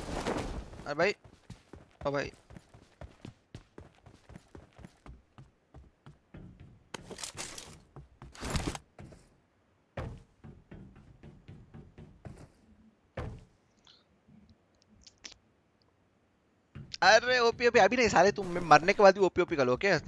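Footsteps clang on hollow metal roofs.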